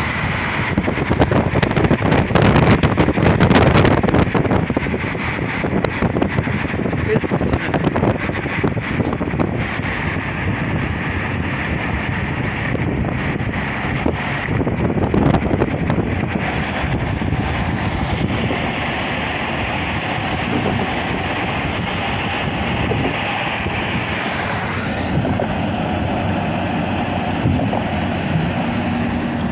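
Wind rushes and road noise rumbles from inside a moving car.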